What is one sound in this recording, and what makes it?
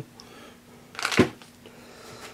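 A metal tool is set down on a metal table with a knock.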